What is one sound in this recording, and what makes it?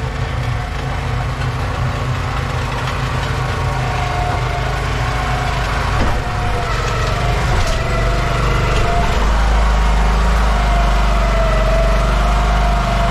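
A small roller's engine rumbles steadily and grows louder as it drives closer.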